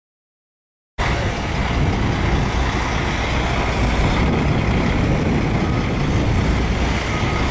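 A heavy truck engine rumbles loudly as the truck drives slowly past.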